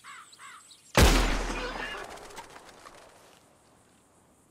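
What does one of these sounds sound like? A rifle fires a single loud shot that echoes and rolls away across open country.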